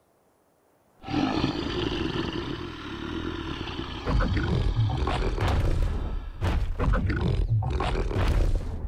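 A large beast growls and roars deeply.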